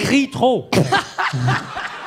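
A woman laughs through a microphone.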